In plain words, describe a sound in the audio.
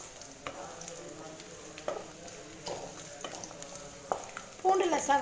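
A spatula scrapes and knocks against a metal pan.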